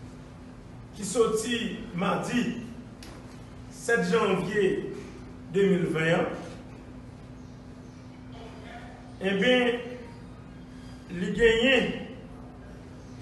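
A middle-aged man speaks slowly and firmly into a microphone, with long pauses.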